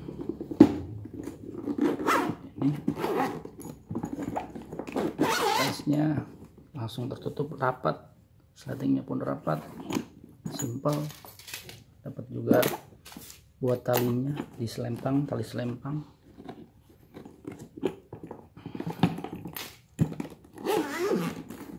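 Hands handle a hard fabric case with soft knocks and rustles.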